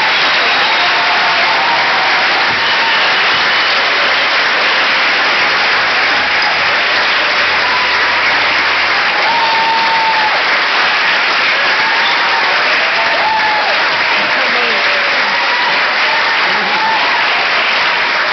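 Children cheer and shout loudly in a large hall.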